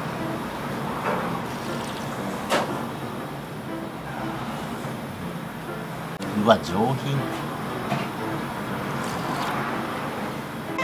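A man slurps soup from a spoon.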